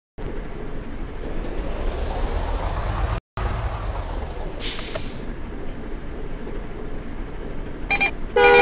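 A bus engine rumbles low and steady.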